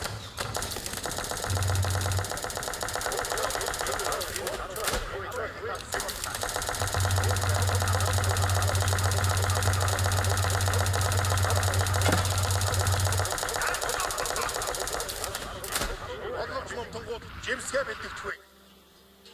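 A large crowd of soldiers marches and clashes with clattering weapons.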